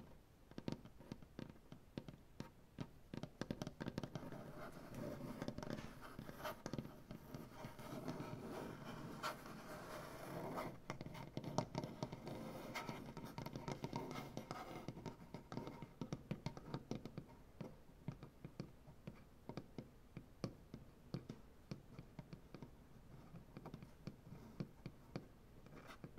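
Fingernails tap and scratch rapidly on a wooden surface, close up.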